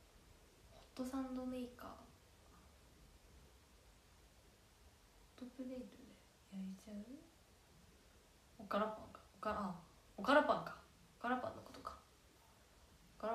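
A young woman speaks softly and haltingly, close to a phone microphone.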